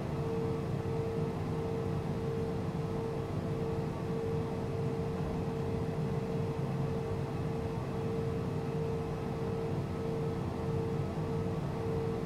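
A jet engine hums steadily while an aircraft taxis.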